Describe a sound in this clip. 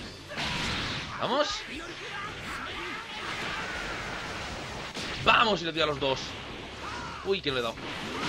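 An energy blast roars and crackles.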